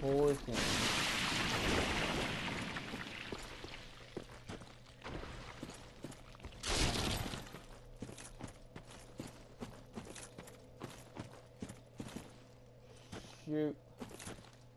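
Armored footsteps tread on stone.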